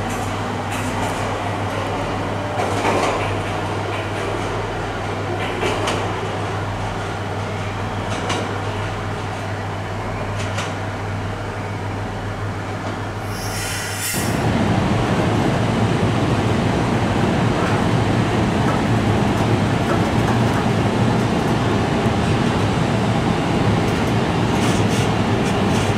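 A freight train rumbles past close by, its wheels clacking over rail joints.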